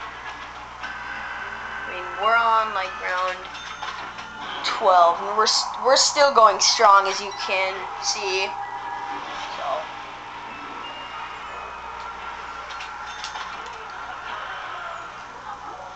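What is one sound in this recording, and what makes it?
Gunshots from a video game play faintly through a television speaker.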